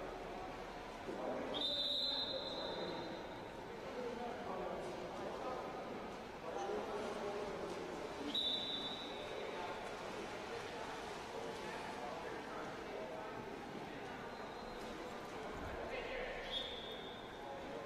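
Spectators chatter in the background.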